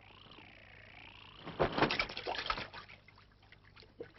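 Water splashes as something plunges in.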